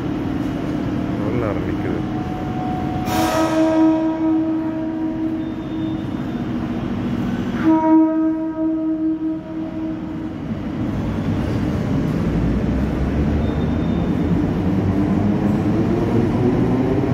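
A train rumbles steadily and starts to roll away.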